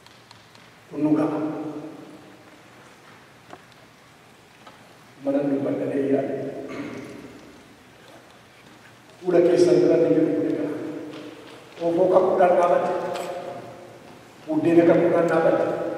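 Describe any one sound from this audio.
A man speaks into a microphone in a large echoing hall, pausing between phrases.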